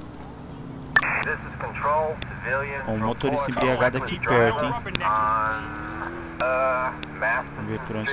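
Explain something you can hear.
A police siren wails with a fast warble.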